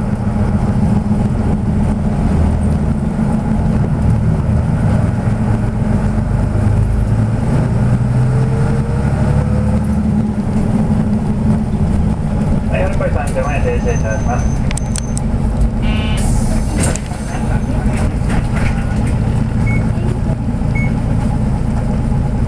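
Vehicles rush past close by in the next lane.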